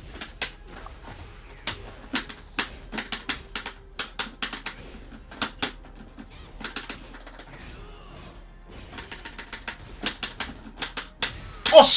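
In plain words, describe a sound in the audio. Punches and kicks land with sharp thuds in quick bursts.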